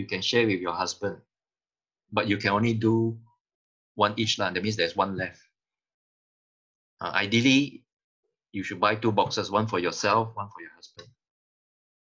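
A middle-aged man speaks calmly through an online call, in bursts with pauses.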